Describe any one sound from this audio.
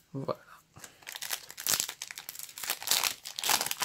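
A foil card wrapper crinkles and tears as hands rip it open.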